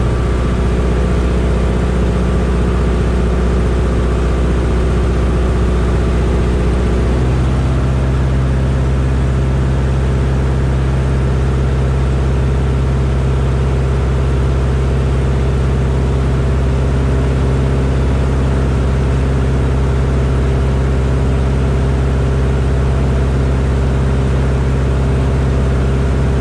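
Wind rushes past an open cockpit.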